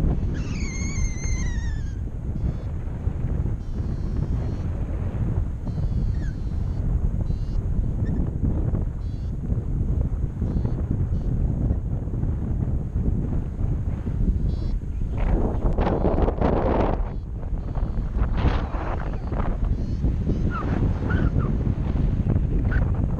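Strong wind rushes and buffets loudly past the microphone outdoors.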